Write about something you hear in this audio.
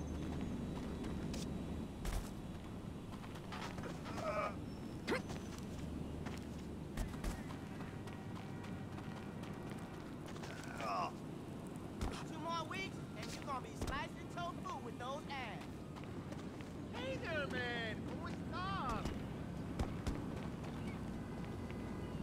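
Footsteps run and scuff across a hard rooftop.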